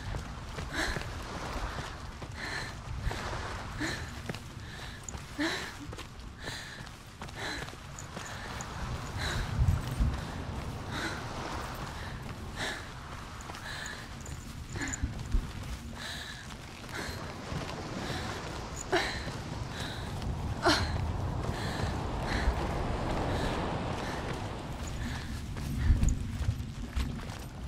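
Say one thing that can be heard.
Quick footsteps crunch over gravel and sand at a steady running pace.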